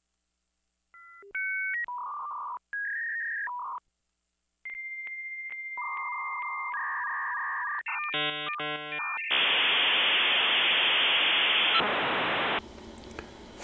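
A telephone modem screeches and hisses as it connects.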